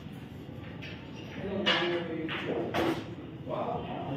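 Pool balls clack together as they are racked on a table.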